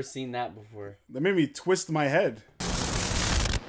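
A man speaks with animation into a microphone, close by.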